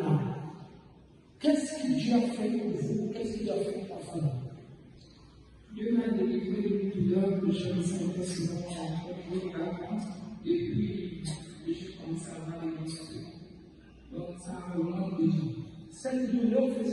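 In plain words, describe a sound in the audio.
A man speaks into a microphone.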